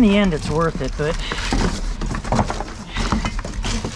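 Plastic and wires crinkle and rattle as a gloved hand digs through them.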